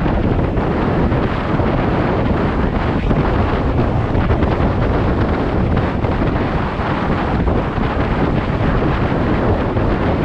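Wind rushes and buffets against the microphone of an electric scooter riding at speed.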